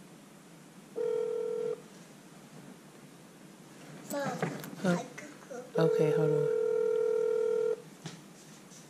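A phone game plays a steady electronic beep.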